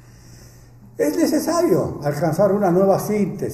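An elderly man speaks firmly into a microphone, heard through a loudspeaker.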